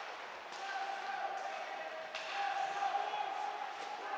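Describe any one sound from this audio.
Players thud against the boards.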